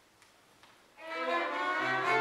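A string quartet begins playing loudly in a reverberant hall.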